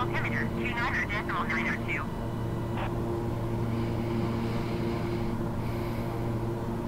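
An aircraft engine drones steadily.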